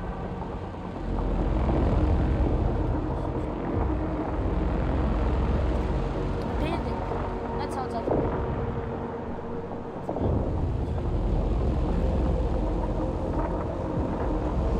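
Low waves rumble steadily across open water.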